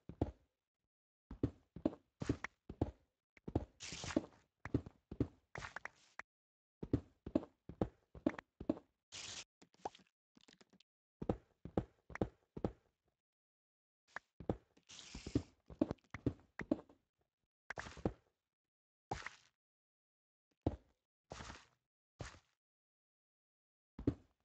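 A pickaxe chips at stone blocks in quick, repeated knocks.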